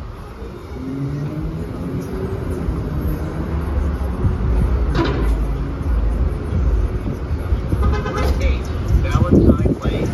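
A bus engine idles with a low steady hum.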